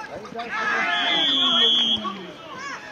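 A referee's whistle blows once sharply.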